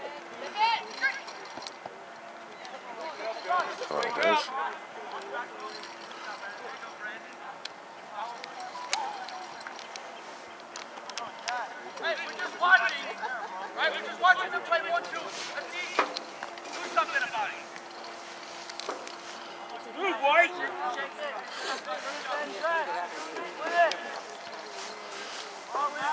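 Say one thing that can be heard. Young male players shout to each other across an open field.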